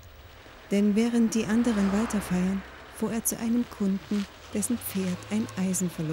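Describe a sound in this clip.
A car engine hums as a car rolls slowly past.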